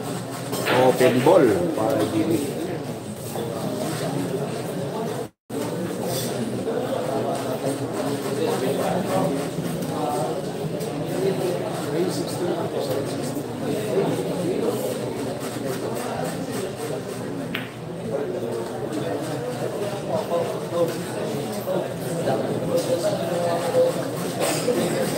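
A crowd of young men chatters nearby.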